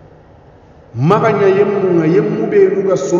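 A man recites in a slow, melodic voice close to a microphone.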